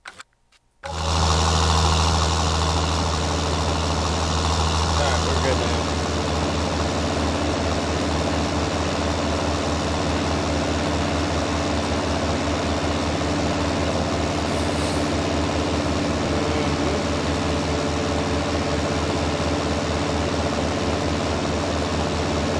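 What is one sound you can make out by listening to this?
A tractor engine rumbles steadily as it drives.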